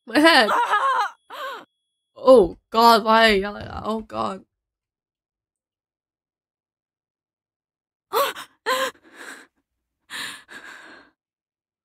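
A young woman speaks and cries out with animation close to a microphone.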